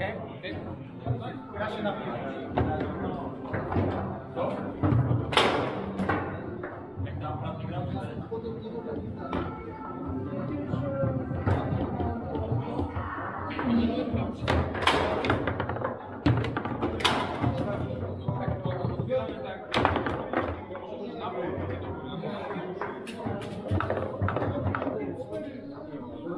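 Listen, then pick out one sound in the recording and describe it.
Foosball rods clack and a ball knocks sharply against the table's sides.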